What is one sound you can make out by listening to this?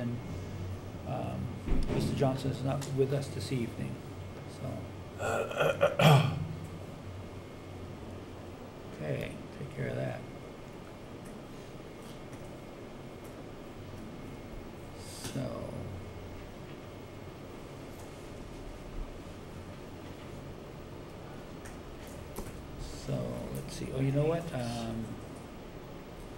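Elderly men speak calmly through microphones.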